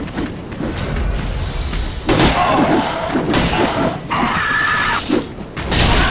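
Swords clash with metallic clangs.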